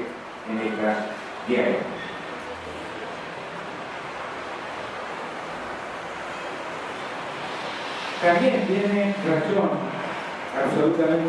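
An elderly man speaks calmly into a microphone through a loudspeaker.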